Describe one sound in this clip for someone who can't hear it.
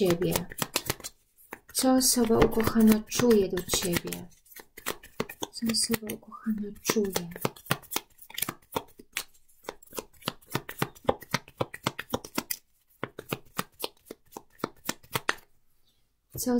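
Playing cards are shuffled with quick riffling flicks.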